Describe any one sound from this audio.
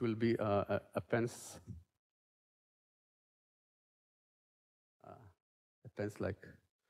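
A man lectures through a microphone, pausing between phrases.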